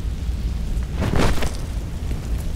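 A person lands hard on the floor with a thud.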